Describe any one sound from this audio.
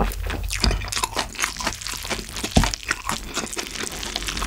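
A metal spoon scrapes against a plate.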